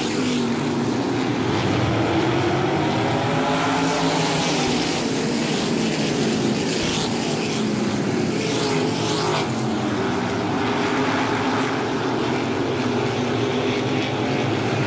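Several racing car engines roar and whine as the cars race past.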